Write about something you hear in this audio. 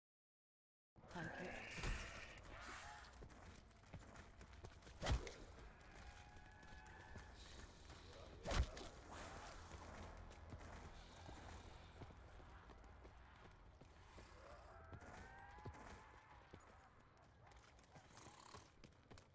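Footsteps thud steadily as a game character runs.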